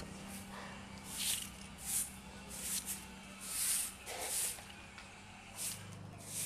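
A broom sweeps across a hard floor in short swishes.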